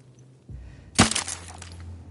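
A gunshot rings out once, loud and sharp.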